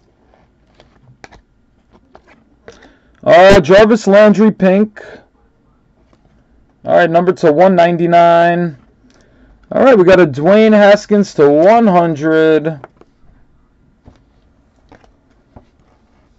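Trading cards slide and flick against each other as they are shuffled.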